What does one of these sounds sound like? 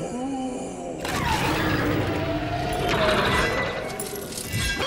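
A giant monster roars loudly.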